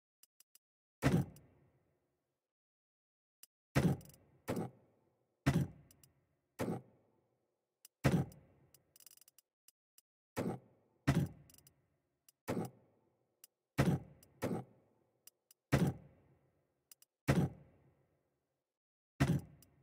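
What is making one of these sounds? Coins clink in short bursts, again and again.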